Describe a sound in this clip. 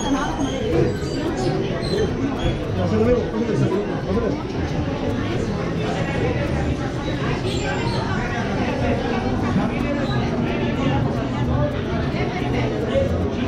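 A crowd of men and women chatter all around in a busy indoor hall.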